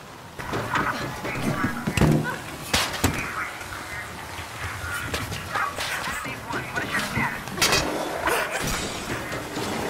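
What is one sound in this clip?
Footsteps clatter quickly on a metal grating.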